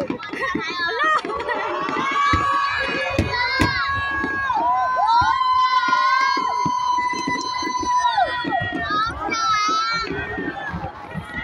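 Fireworks whistle shrilly as they rise.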